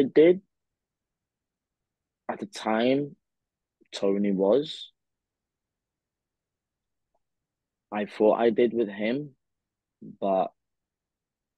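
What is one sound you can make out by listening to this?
A young man speaks calmly in short phrases over an online call.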